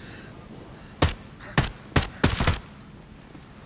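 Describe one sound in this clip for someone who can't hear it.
Gunshots ring out in several quick, loud bursts.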